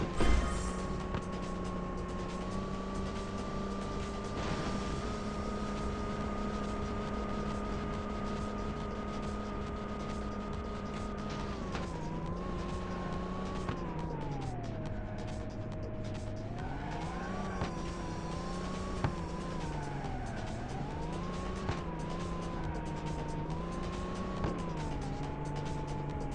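A car engine roars steadily at high speed, then drops low as the car slows and revs up again.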